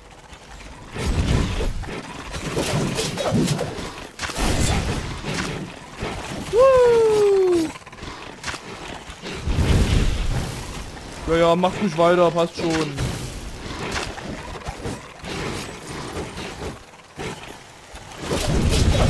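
Swords slash and strike with loud, whooshing impacts in quick bursts.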